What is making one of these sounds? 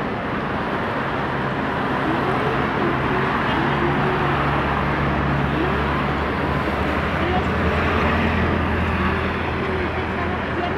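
Car engines hum as traffic idles and pulls away.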